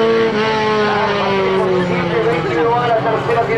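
Car engines roar loudly and then fade as the cars race away.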